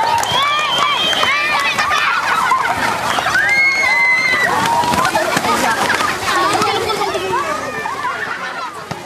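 Children shout and cheer loudly outdoors.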